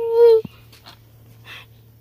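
Fingers rub against a soft plush toy close by.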